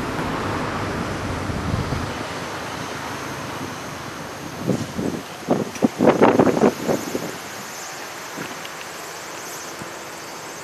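Cars drive along a nearby street.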